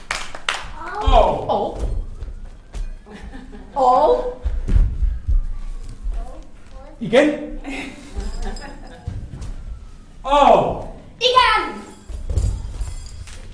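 A dancer's bare feet thump on a soft floor.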